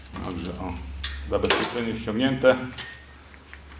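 Metal gears clink and ring as a gearbox shaft is turned by hand.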